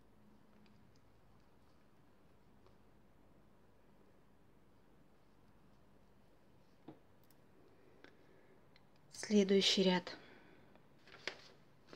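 Knitting needles click softly.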